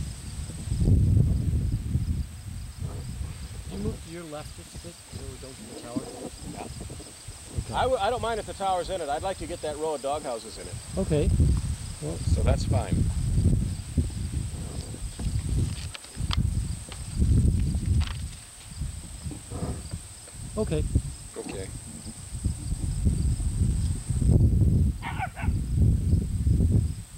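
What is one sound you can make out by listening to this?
Wind buffets the microphone outdoors.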